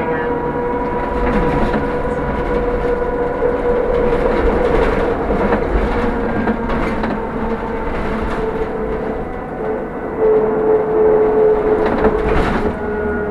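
A bus rattles and clatters over the road.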